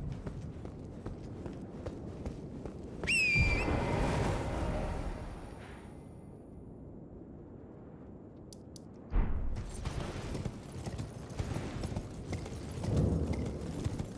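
Footsteps run across a stone floor.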